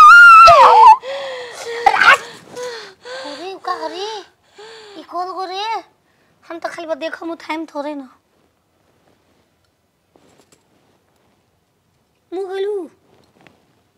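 A young woman speaks close by with emotion, her voice rising and falling.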